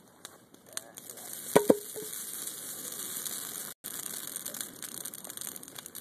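A fire roars as flames flare up.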